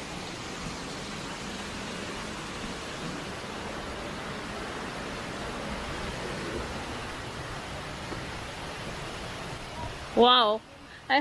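A stream gurgles and rushes over rocks.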